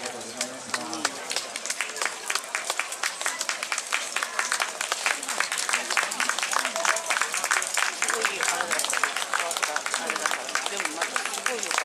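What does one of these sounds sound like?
Many wooden clappers clack in a quick, uneven rhythm.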